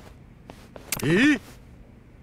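A man speaks with surprise.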